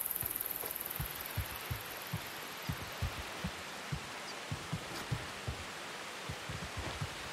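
Footsteps thud steadily across the ground and a hard floor.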